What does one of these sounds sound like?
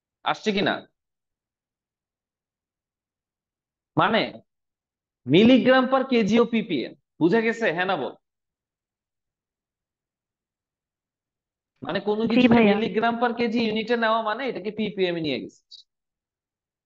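A young man explains calmly into a close microphone, in short bursts with pauses.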